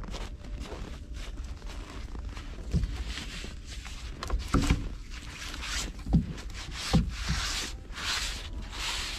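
A man sweeps snow off a wooden roof with a rustling scrape.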